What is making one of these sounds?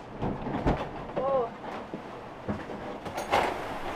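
Rain patters on a window.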